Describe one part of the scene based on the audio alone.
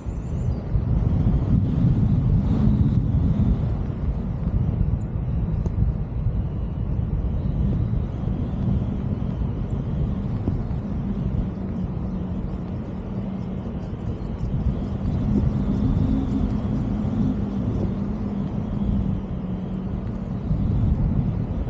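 Wind rushes loudly and steadily past a microphone outdoors.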